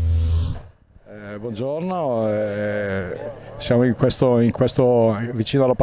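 An older man speaks into a microphone, close by.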